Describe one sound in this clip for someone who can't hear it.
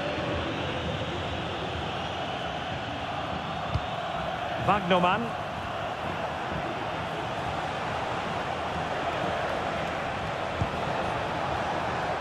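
A stadium crowd murmurs and cheers steadily all around.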